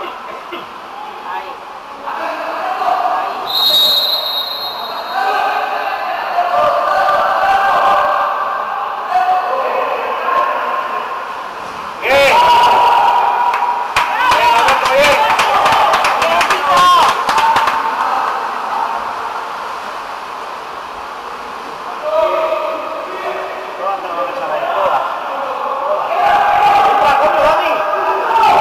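Young men shout to each other from the water, echoing in a large hall.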